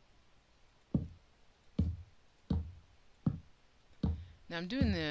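Wooden blocks thud as they are set down, one after another.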